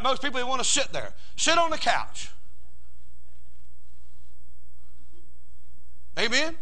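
An elderly man speaks to an audience through a microphone, pausing between phrases.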